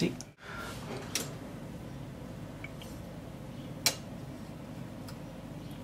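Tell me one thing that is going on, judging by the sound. Metal cutlery clinks and rattles in a holder.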